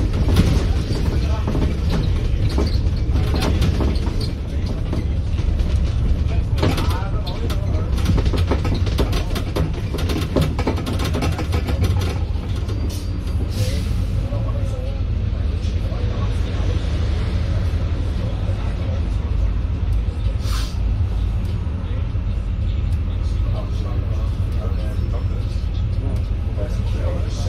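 The bus rattles and knocks over the road.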